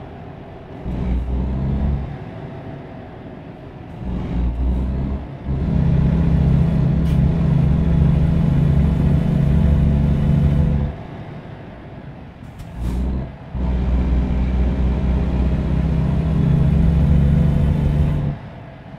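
A truck engine drones steadily, swelling loud in long bursts and easing off between them.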